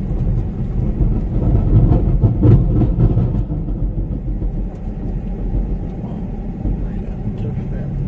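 Tyres crunch slowly over a dirt road.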